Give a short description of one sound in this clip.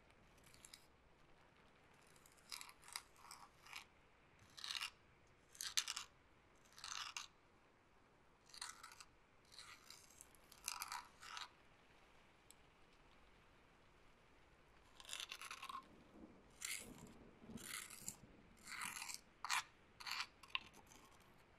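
A soft brush sweeps across a microphone in short, hushed bursts, very close.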